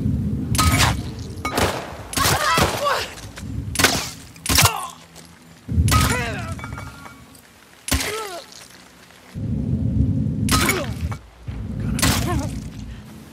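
Pistol shots crack sharply, one after another.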